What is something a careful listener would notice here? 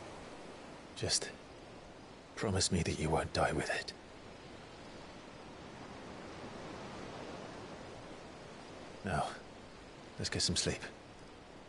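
A young man speaks in a low, gentle voice, close by.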